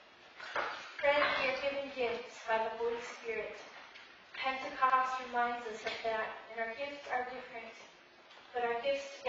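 A woman speaks calmly in an echoing hall, heard through a microphone.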